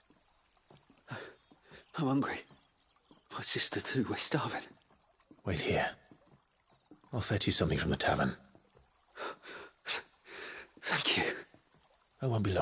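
A young man speaks weakly and haltingly, close by.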